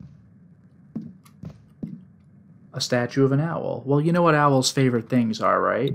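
Footsteps tread across a wooden floor.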